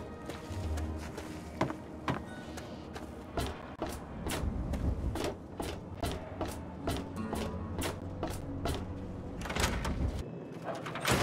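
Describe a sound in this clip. Footsteps clank on metal walkways.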